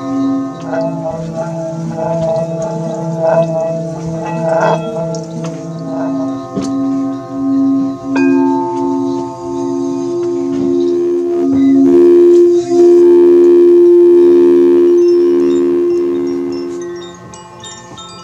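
Singing bowls ring and hum with pulsing, wavering tones.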